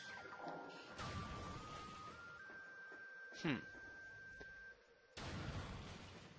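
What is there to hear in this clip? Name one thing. An energy blaster fires crackling shots.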